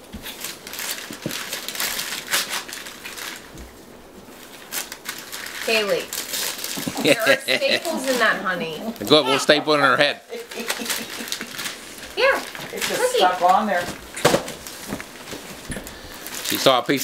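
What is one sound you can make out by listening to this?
Wrapping paper rustles and crinkles.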